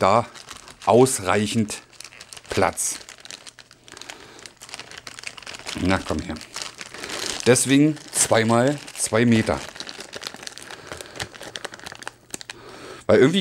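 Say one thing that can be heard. A man talks calmly and close to a clip-on microphone, in short bursts with pauses.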